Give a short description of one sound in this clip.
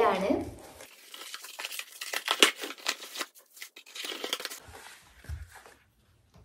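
Cardboard rustles and tears as a box is opened.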